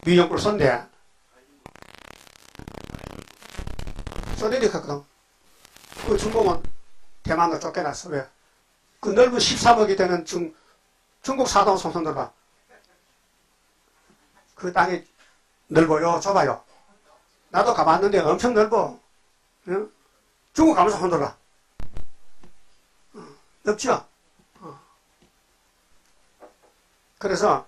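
An elderly man preaches forcefully into a microphone, in bursts with pauses.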